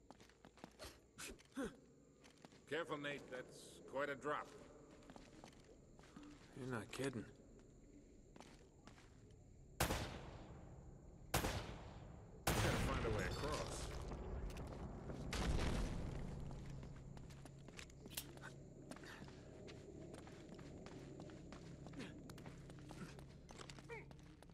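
Footsteps scuff on stone.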